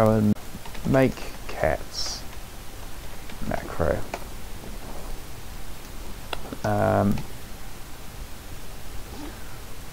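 A man speaks in short bursts close to a microphone.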